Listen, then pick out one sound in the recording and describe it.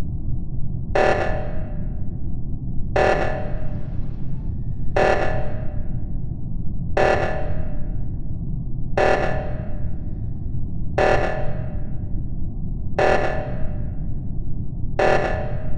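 A game alarm blares in short bursts every two seconds.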